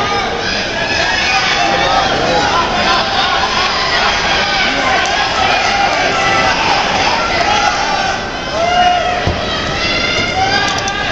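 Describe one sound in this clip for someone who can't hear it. A large crowd shouts and cheers loudly in a big echoing hall.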